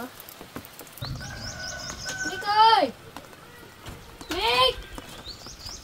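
Rain drips steadily from a thatched roof outdoors.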